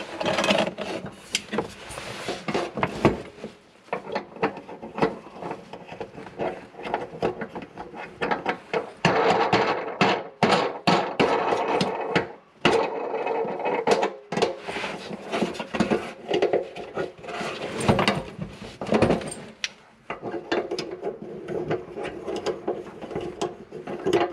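Plastic drain pipes knock and rattle as hands handle them.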